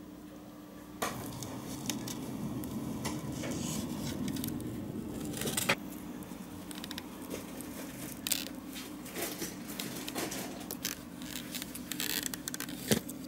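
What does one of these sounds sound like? Fingers squeeze and knead soft putty with quiet sticky clicks.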